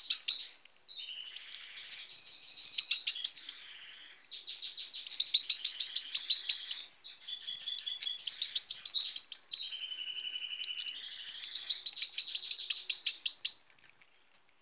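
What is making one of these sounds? A small bird sings a fast, chattering song of high chirps and trills close by.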